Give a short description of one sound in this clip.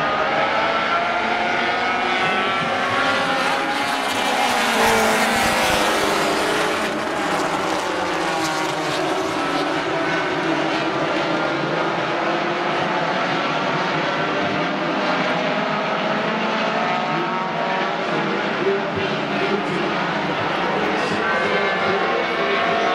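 Race car engines whine and rise in pitch as the cars pass.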